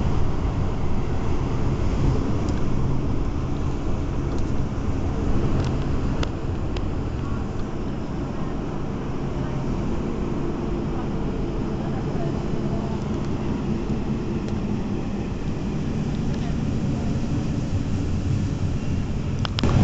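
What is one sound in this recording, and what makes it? A train rumbles steadily along the tracks from close by.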